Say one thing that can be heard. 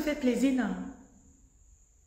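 A woman speaks loudly and with animation, close by.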